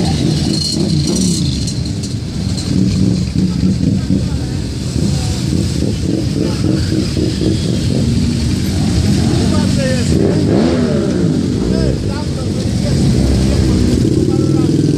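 Many motorcycle engines rumble loudly as a procession rides past close by.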